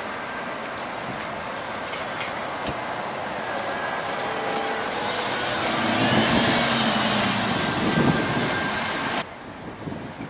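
Tyres roll over pavement as a bus passes.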